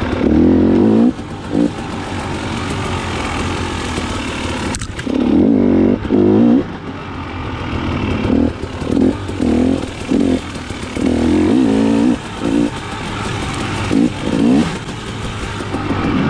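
A dirt bike engine revs up and down in bursts close by.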